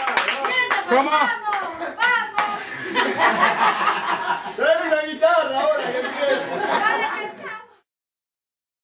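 Young women laugh and shout excitedly close by.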